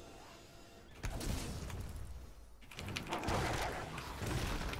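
Game battle effects zap and clash.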